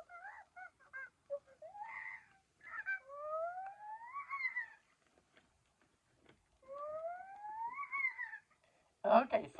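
A toy monkey chirps and squeaks in rising, sliding tones.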